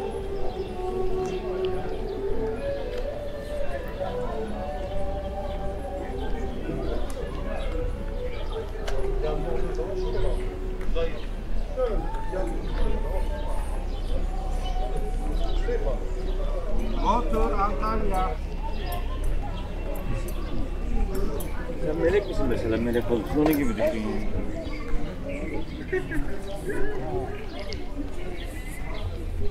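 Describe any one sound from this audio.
Men and women talk nearby in passing outdoors.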